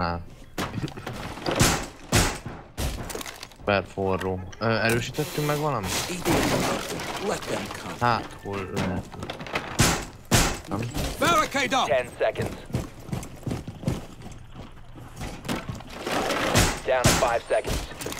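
A wooden barricade is banged into place with loud knocks.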